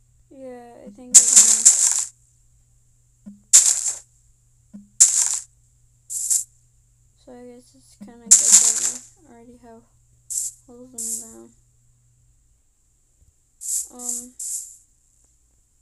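A young girl talks with animation, close to a microphone.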